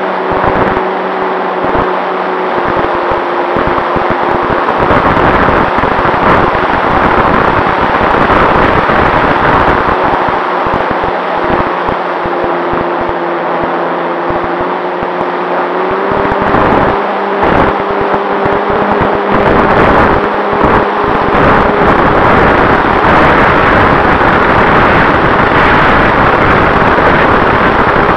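Wind rushes loudly past the aircraft.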